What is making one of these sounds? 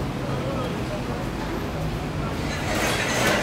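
Traffic hums along a busy street.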